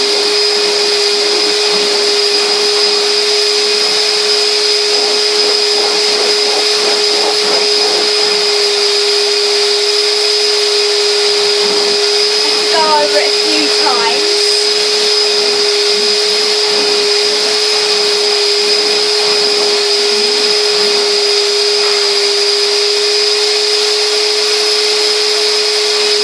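A vacuum motor whines steadily and loudly close by.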